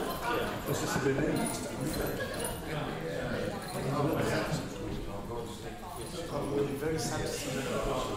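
Several men and women chat at once in a room.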